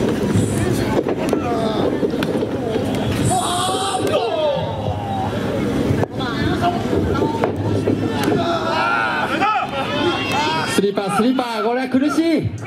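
Bodies slap and thud on a wrestling ring's canvas.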